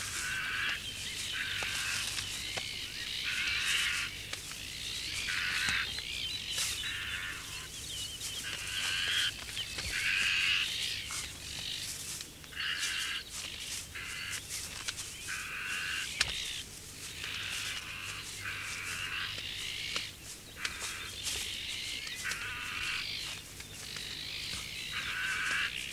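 Wings flap as birds flutter through leaves.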